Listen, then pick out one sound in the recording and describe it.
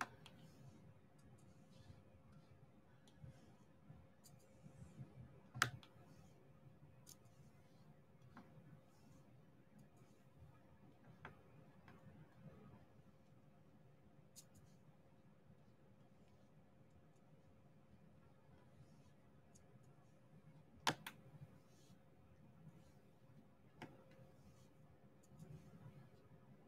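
Small plastic beads click softly as they are pressed onto a board.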